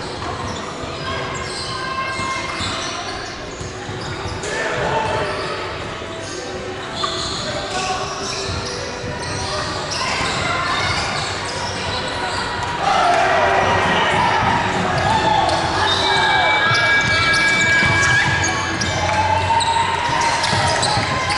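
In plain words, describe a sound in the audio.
Young women talk and call out in a large echoing hall.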